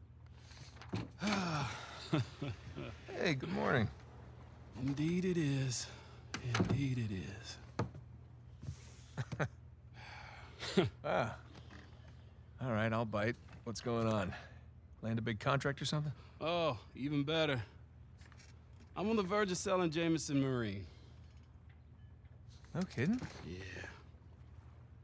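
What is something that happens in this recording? A middle-aged man speaks cheerfully and chuckles.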